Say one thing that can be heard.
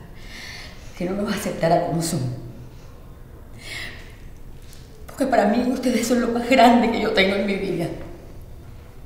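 An elderly woman speaks with agitation, close by.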